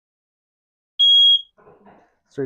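A smoke alarm gives a short, loud, high beep.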